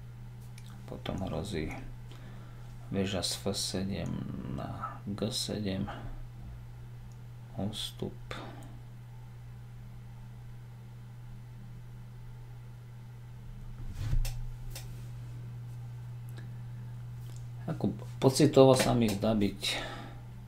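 A man speaks calmly into a close microphone, with long pauses.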